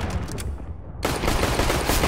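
Rifle shots crack out in rapid bursts.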